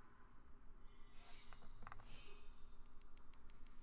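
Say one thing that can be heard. Magical chimes and whooshes sound as a card is played.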